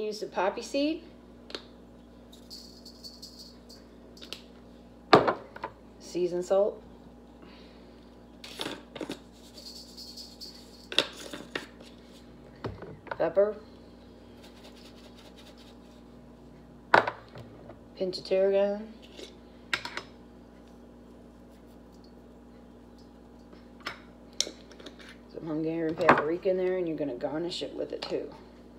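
Spice jars click and rattle as they are opened and shaken.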